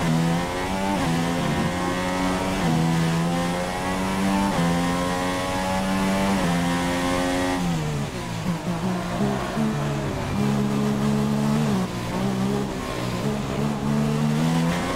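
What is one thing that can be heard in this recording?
A racing car engine screams at high revs, climbing in pitch through the gears.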